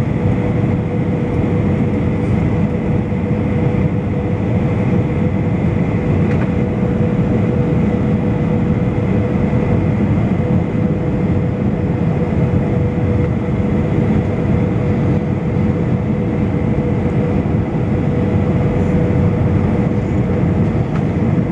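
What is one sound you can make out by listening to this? A jet engine roars steadily inside an airliner cabin.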